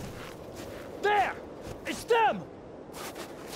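A man calls out loudly.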